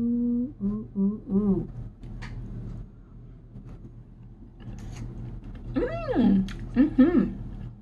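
A woman hums with pleasure, close to the microphone.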